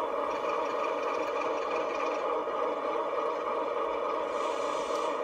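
A diesel locomotive engine rumbles steadily as the train rolls along the track.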